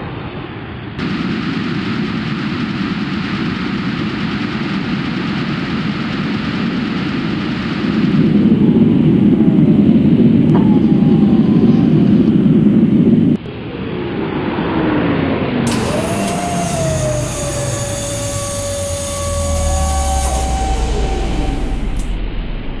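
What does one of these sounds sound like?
A spacecraft engine roars as it flies past.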